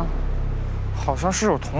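A young woman answers nearby.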